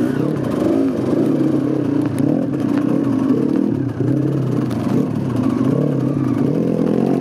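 A dirt bike engine revs and sputters up close, rising and falling in pitch.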